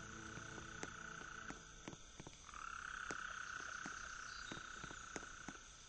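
An animal's paws pad softly on the ground.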